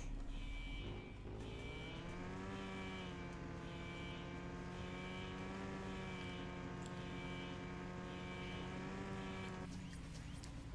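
A video game car engine hums steadily, then stops.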